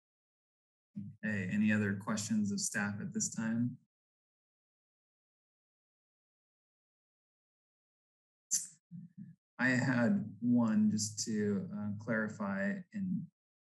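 A young man speaks calmly over an online call, with a long pause.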